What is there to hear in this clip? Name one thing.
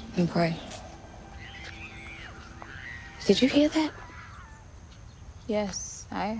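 A young woman speaks quietly nearby in short phrases.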